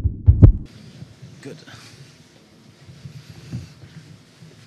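Chairs shift and creak as two men sit down.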